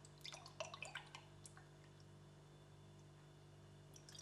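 Juice pours from a bottle into a glass.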